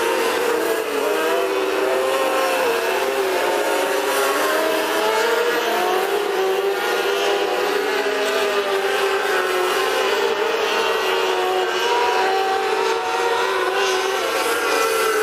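Racing car engines roar loudly as they speed around a dirt track.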